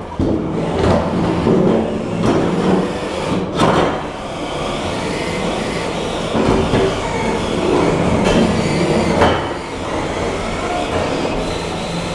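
A spinning weapon whines and scrapes on the floor.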